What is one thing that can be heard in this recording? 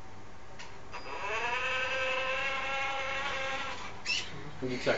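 A small electric motor whines steadily as a toy car drives off.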